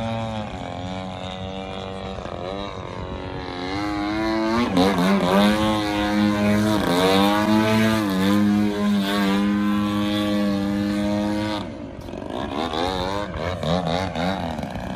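A model plane's engine whines overhead, its pitch rising and falling as it loops.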